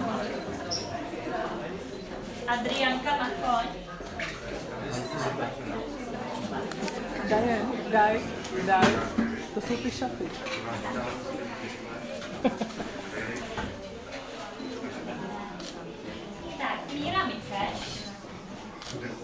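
Young children chatter and call out excitedly in a room.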